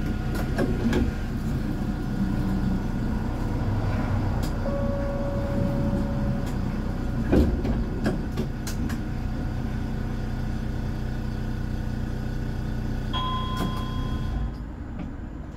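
A tram's motor hums steadily and then quiets.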